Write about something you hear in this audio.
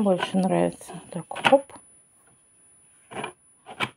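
A plastic globe clicks onto a lamp base.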